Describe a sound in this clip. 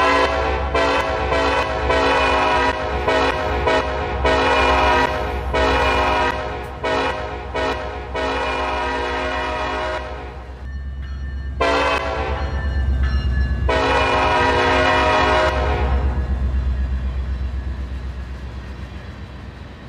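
Train wheels clatter over the rails.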